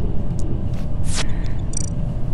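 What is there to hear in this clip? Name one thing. A short electronic whoosh plays as a game panel opens.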